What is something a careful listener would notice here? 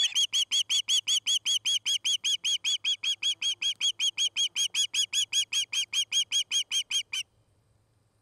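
A young bird of prey calls close by with rapid, shrill, repeated chirps, then falls silent.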